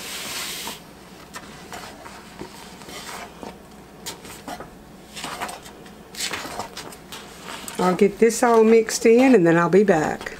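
A wooden spoon stirs and scrapes inside a pot.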